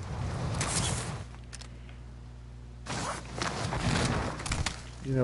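A young man talks with animation into a microphone, close up.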